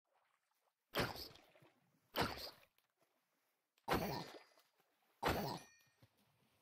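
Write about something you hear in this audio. A video game sword strikes a zombie.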